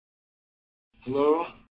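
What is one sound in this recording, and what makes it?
A cat meows.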